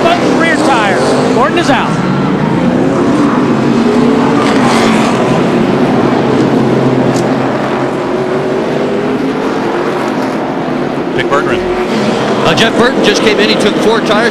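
Many race car engines roar and drone steadily around a track.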